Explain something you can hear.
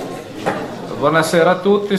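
An elderly man speaks calmly into a microphone.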